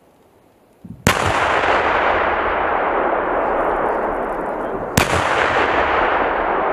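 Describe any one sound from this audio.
A second powerful explosion blasts and roars, followed by a long rumble.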